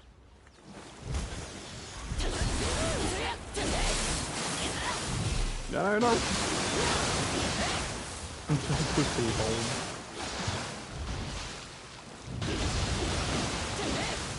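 Sword blades clash and slash in a fight.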